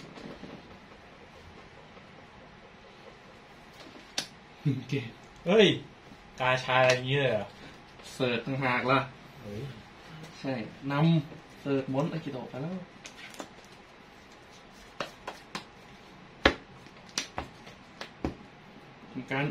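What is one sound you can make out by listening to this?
Playing cards riffle and flick in a player's hands.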